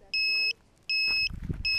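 Footsteps thud on grass close by.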